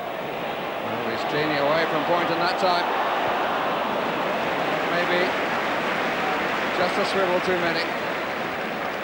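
A large crowd shouts and chants in an outdoor stadium.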